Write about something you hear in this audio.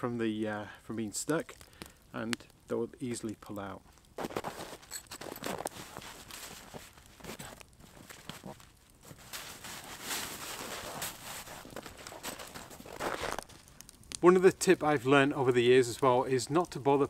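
A man speaks calmly, close by, outdoors.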